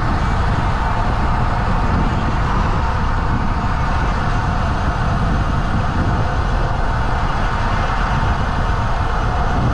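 Tyres roll steadily over asphalt.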